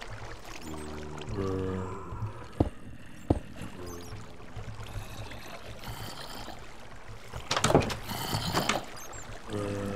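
A wooden door opens and shuts with knocks.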